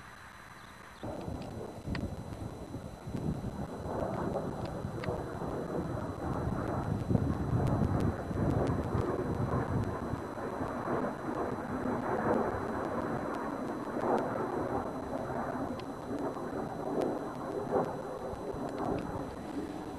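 A twin-engine propeller plane flies overhead.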